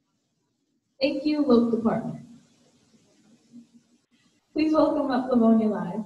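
A girl speaks into a microphone over a loudspeaker in an echoing hall.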